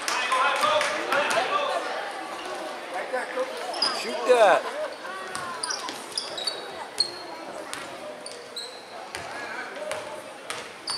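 Spectators chatter and call out in a large echoing gym.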